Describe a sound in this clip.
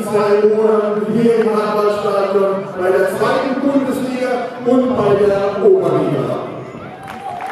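A group of young men sing loudly together outdoors.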